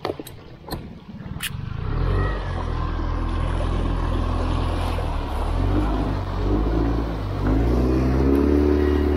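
An outboard motor starts up and runs with a steady drone.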